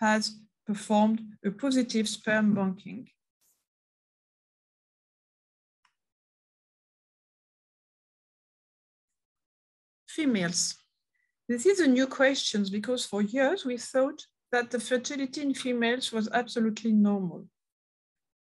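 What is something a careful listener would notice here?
A woman speaks calmly over an online call, pausing between phrases.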